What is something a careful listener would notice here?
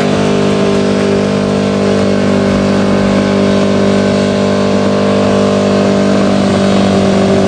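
A pickup truck's engine revs hard during a burnout.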